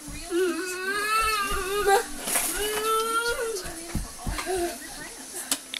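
A young child sings out loudly in a high voice nearby.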